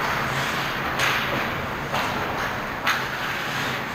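Hockey sticks and a puck clack sharply.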